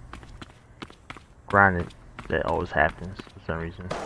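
Footsteps tap on asphalt.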